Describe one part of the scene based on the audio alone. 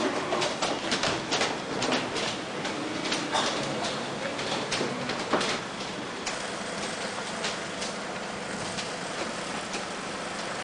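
Street noise murmurs steadily.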